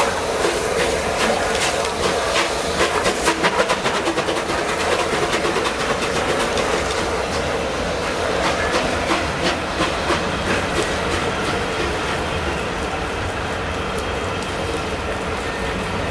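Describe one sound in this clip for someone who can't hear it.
Train wheels clatter rhythmically over rail joints close by.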